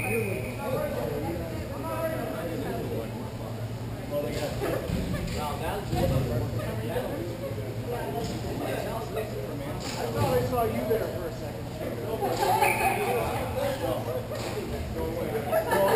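Skate wheels roll and scrape across a hard floor in a large echoing hall.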